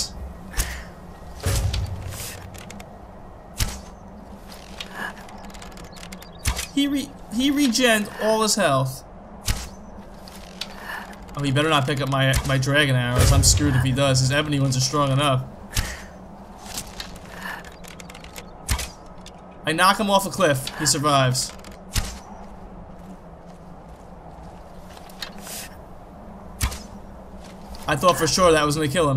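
A bowstring twangs as arrows are loosed again and again.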